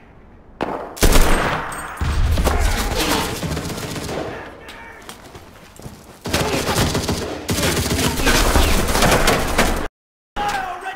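Rapid gunfire bursts out loudly, in long volleys.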